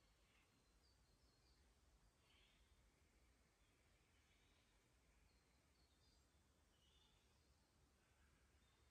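A shallow creek trickles faintly over stones.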